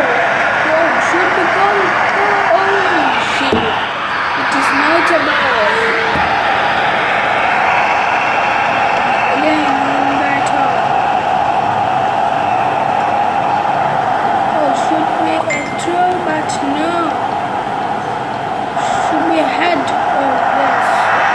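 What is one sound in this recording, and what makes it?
A boy talks casually close to a microphone.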